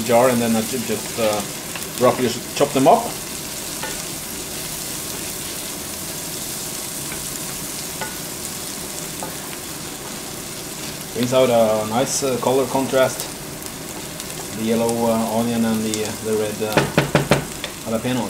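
Onions sizzle in a frying pan.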